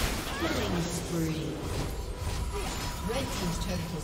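A tower crumbles with a heavy crash.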